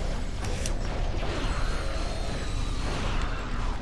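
Explosions boom and crackle in a video game.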